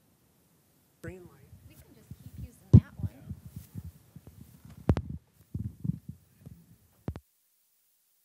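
A microphone thumps and rustles as it is handled up close.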